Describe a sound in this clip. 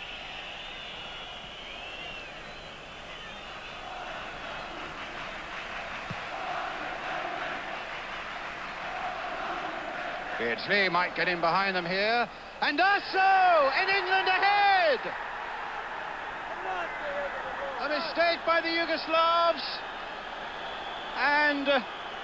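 A large stadium crowd roars, growing louder as the attack builds.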